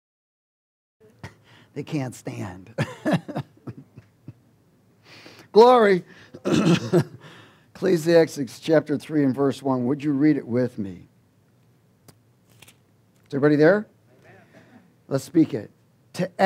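A middle-aged man speaks with animation into a headset microphone.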